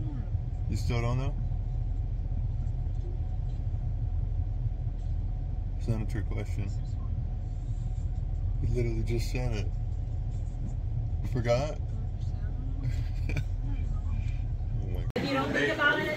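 A car engine hums steadily at low pitch from inside the cabin.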